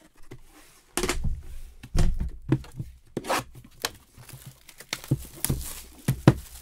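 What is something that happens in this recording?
Cardboard packaging rustles and scrapes as a hand handles it close by.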